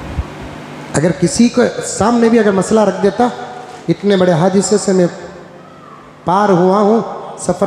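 An elderly man speaks emphatically through a microphone.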